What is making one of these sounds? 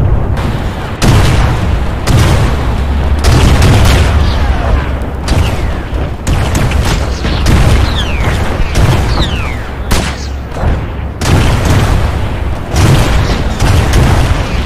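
Rockets launch with loud whooshing roars.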